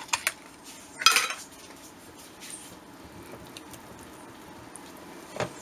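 A wire whisk stirs a thick mixture in a glass bowl.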